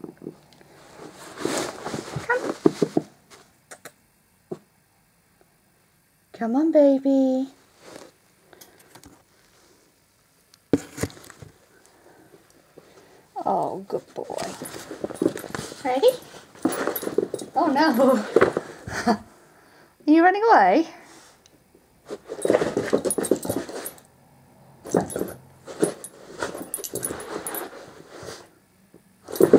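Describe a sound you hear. A young woman talks softly and playfully close by.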